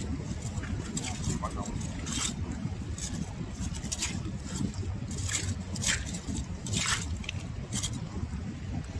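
A metal rake scrapes and scratches through wet mud.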